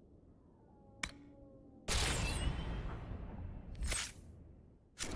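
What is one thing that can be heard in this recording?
Menu clicks chime softly.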